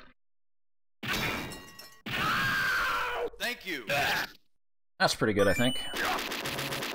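Arcade game gunfire and explosions crackle rapidly.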